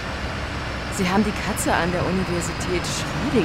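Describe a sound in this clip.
A bus bumps into a car with a few knocks.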